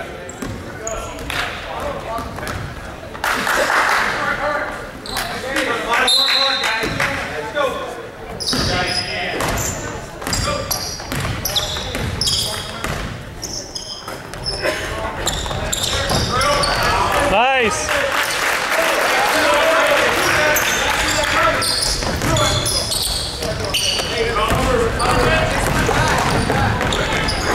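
A crowd chatters and cheers in the stands.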